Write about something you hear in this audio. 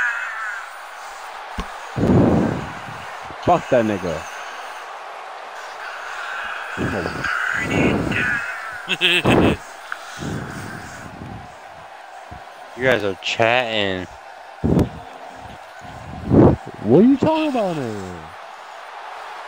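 A large arena crowd cheers steadily.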